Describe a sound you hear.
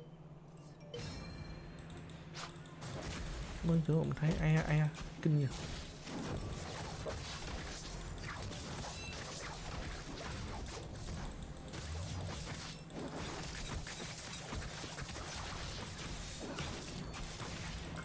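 Sword strikes and magic blasts clash in quick bursts.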